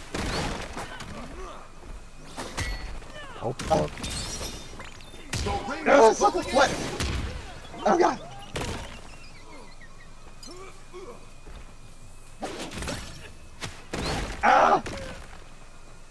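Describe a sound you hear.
Cartoonish punches and impacts thud and crackle in quick bursts.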